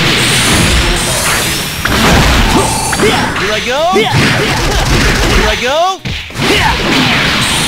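Fiery explosions roar and crackle.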